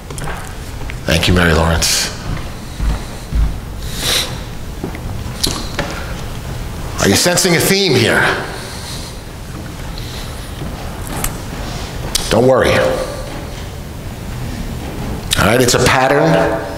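An older man speaks calmly in a large echoing hall.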